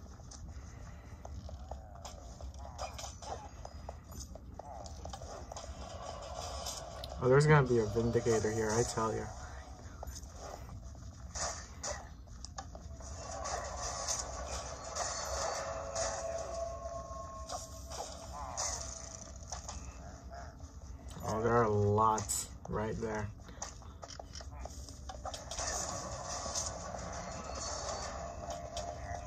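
Video game music and sound effects play through a small speaker.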